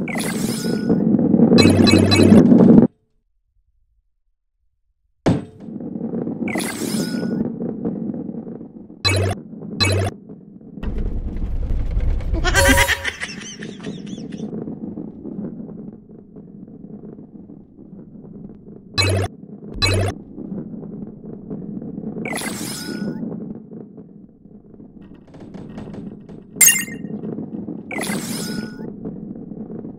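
A ball rumbles as it rolls along a wooden track.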